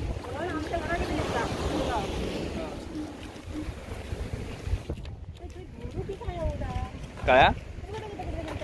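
Small waves wash gently against rocks.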